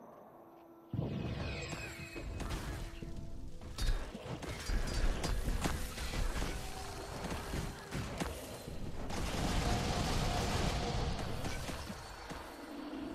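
Weapons clash and strike in a game fight.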